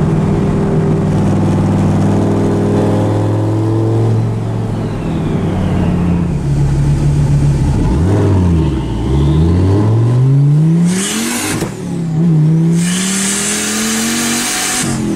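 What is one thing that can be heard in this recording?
A car engine hums steadily from inside the cab, its pitch rising and falling as it shifts gears.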